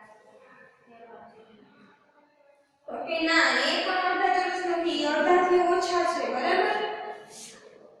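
A young woman speaks clearly and calmly, close by.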